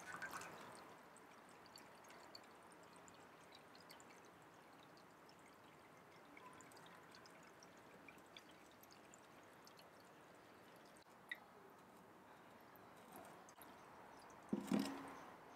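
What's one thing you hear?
Water trickles from a watering can into a basin of water.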